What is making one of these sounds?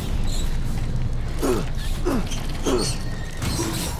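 Small creatures skitter and screech nearby.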